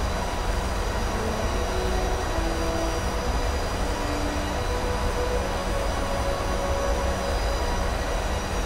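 A jet engine roars with a steady, low drone and a thin whine.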